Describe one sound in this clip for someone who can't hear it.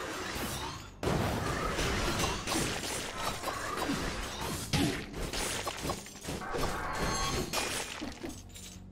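Video game explosions burst with crackling debris.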